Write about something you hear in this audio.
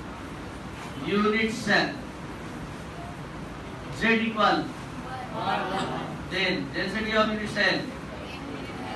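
A man speaks calmly and clearly, explaining in bursts with short pauses.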